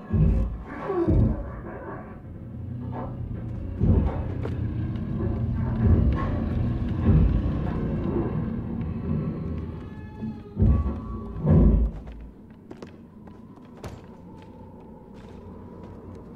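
Small footsteps patter on creaky wooden floorboards.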